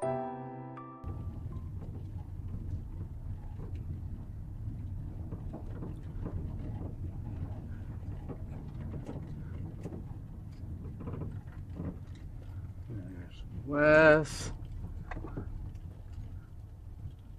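A vehicle's tyres crunch and rumble slowly over a gravel road, heard from inside the vehicle.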